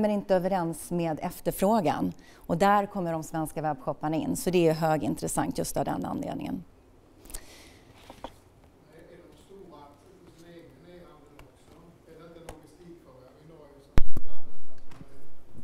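A young woman speaks calmly to an audience through a microphone, sometimes pausing.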